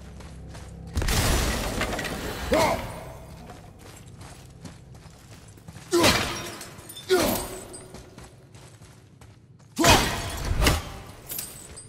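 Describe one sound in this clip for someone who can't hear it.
Heavy blows land with loud crashing impacts.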